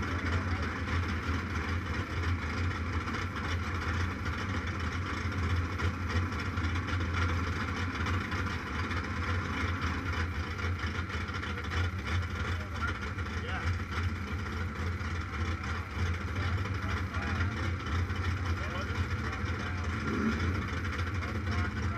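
A motorcycle engine idles steadily close by, with a deep rumble.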